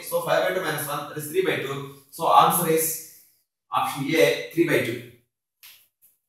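A man explains calmly and clearly, close to a microphone.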